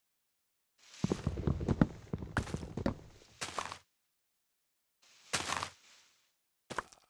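Leaves rustle and crunch as they are broken.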